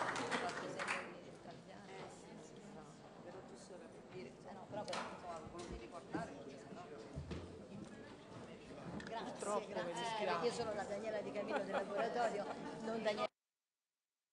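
People chat and murmur as they move about.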